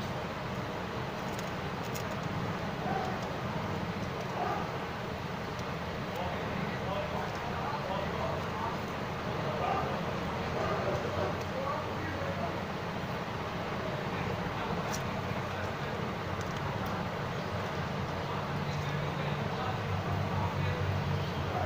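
Small plastic parts click and scrape as a phone case is pried apart.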